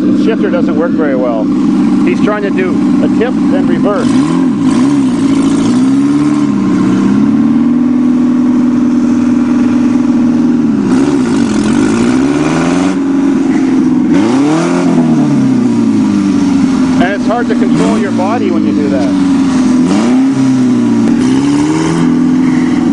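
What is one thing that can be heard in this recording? A small vehicle engine hums and revs up and down as it drives slowly closer.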